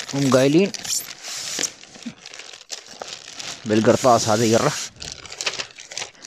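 Cardboard scrapes and rubs as items are pulled out of a box.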